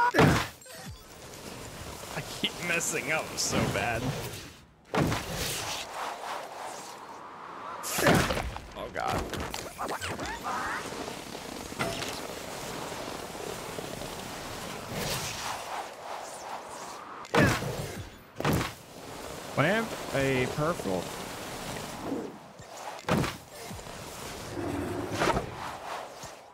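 Snowboard edges scrape and hiss across packed snow.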